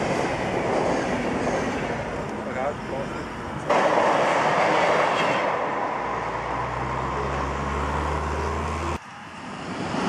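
A model train rolls along its track.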